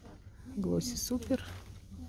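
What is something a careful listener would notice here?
A paper seed packet rustles in a hand.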